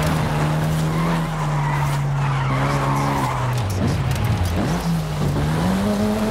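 A car engine revs loudly, its pitch dropping and then climbing again.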